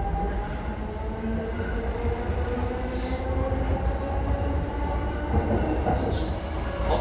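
A train's electric motor whines and slowly shifts in pitch.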